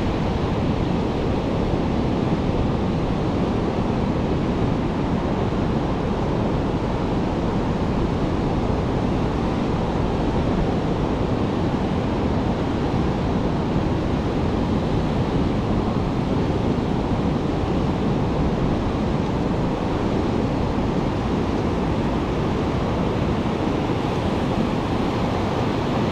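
Waves break and wash onto the shore nearby.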